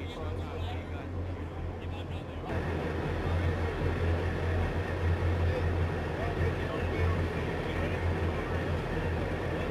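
The diesel engine of an amphibious assault vehicle idles with a low hum.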